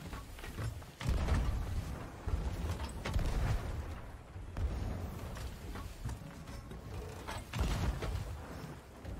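Cannons fire with heavy booms.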